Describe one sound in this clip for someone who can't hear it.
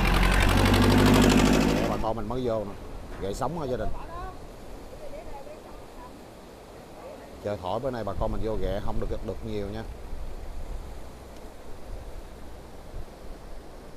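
Waves wash onto the shore.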